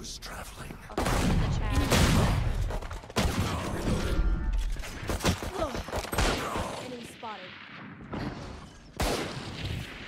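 Pistol shots crack sharply.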